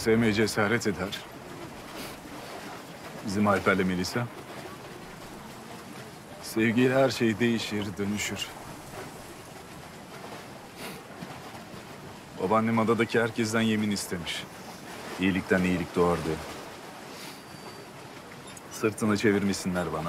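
A young man speaks softly and emotionally, close by.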